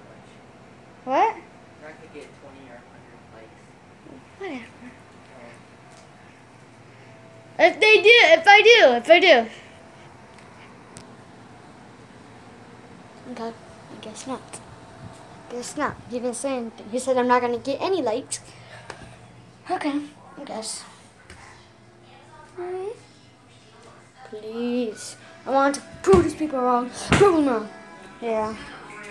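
A young girl talks with animation, close to the microphone.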